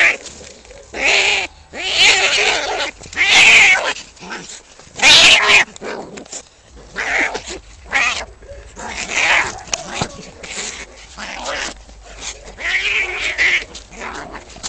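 Cats yowl and screech loudly while fighting.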